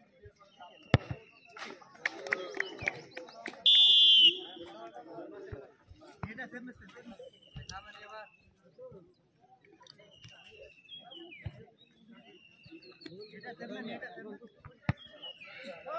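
A foot kicks a football with a sharp thud.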